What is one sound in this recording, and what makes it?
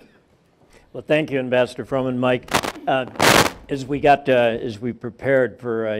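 A man speaks through a microphone in conversation.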